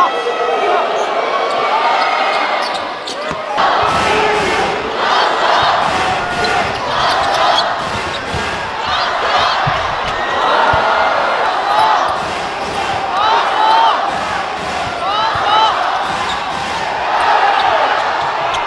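Basketball shoes squeak sharply on a hardwood court.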